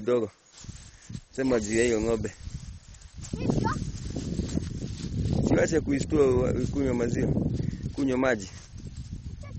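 A young child talks and calls out loudly nearby.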